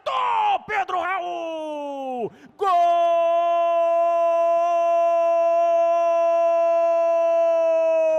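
A man shouts excitedly into a microphone, then holds one long, loud cry.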